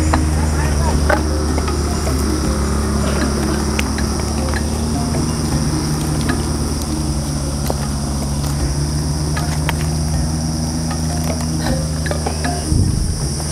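Footsteps crunch on dry leaves outdoors.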